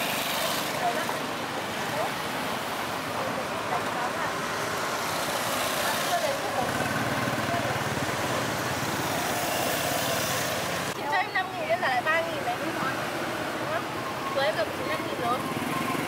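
Motorbike engines hum and pass by on a busy street outdoors.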